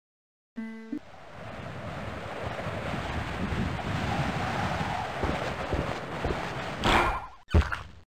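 Wind rushes and whooshes loudly.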